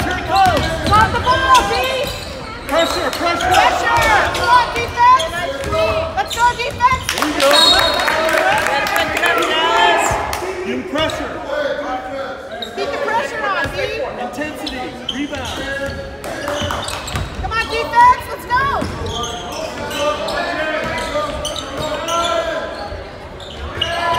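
Basketball players' sneakers squeak on a hardwood court in an echoing gym.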